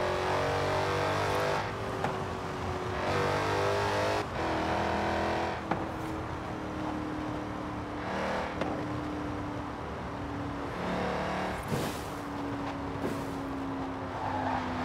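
A supercharged V8 muscle car engine roars at high speed.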